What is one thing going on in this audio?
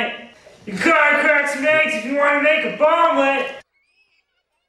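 A young man talks loudly and animatedly right up close.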